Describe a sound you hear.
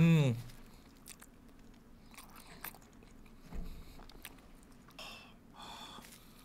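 A young man chews food noisily.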